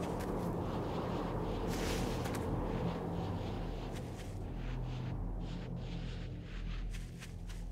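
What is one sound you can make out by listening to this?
Footsteps crunch steadily on dry ground.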